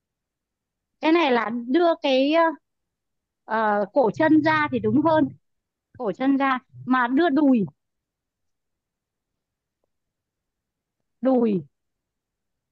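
A young woman speaks clearly and calmly, close to a microphone, in short bursts.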